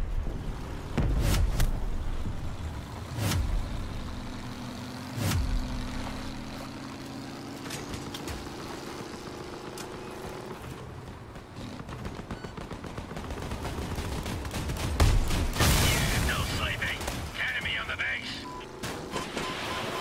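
A heavy vehicle engine rumbles and revs.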